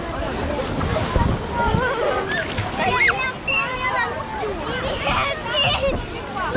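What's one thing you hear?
Children shout and squeal with excitement outdoors.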